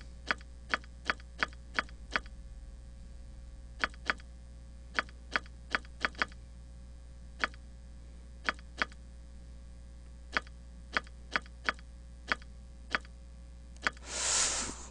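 Short, sharp interface clicks sound again and again.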